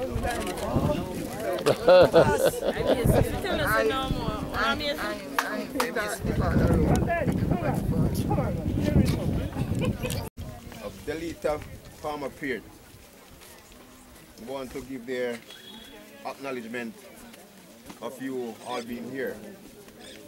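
A crowd of men and women talk close by, outdoors.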